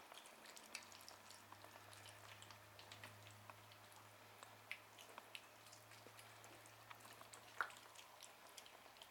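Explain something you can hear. Kittens chew and smack wet food close by, with many small clicking and lapping sounds.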